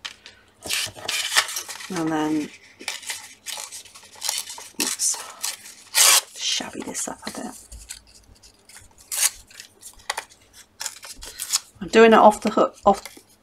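Paper rustles and crinkles under handling hands.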